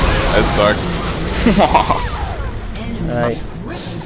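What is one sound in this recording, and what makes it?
Magic blasts and clashing sounds of a fantasy battle ring out.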